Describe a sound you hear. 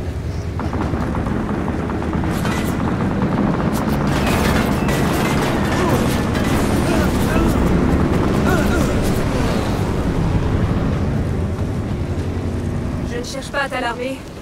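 Aircraft engines drone loudly overhead.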